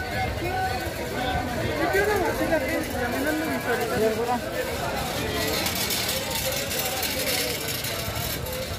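A crowd of men and women chatters nearby on a busy street.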